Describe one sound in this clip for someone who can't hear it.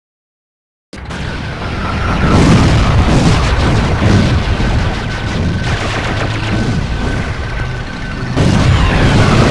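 A vehicle engine rumbles and revs.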